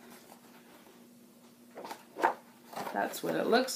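Paper pages rustle.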